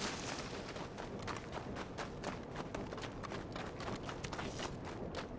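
Footsteps crunch quickly on snowy and gravelly ground.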